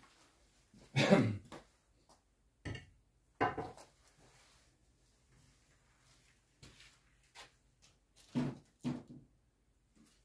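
Metal tools clank and knock a few times.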